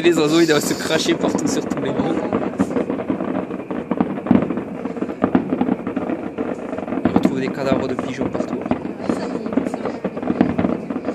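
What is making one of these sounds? Fireworks bang and crackle in the distance.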